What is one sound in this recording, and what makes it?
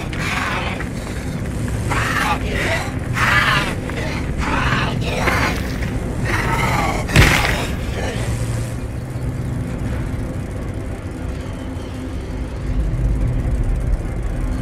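A car engine idles with a low, steady rumble.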